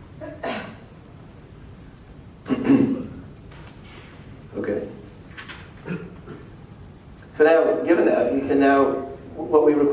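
A man speaks in a lecturing tone, with pauses, in an echoing hall.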